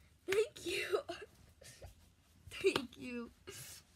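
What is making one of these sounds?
A young girl laughs.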